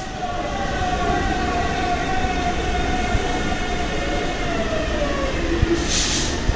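A subway train's motors whine and slowly drop in pitch in an echoing station.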